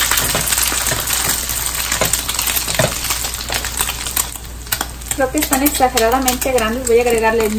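Oil sizzles and crackles in a frying pan.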